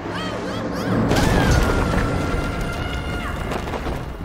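A heavy vehicle smashes through a wooden structure with a loud crash.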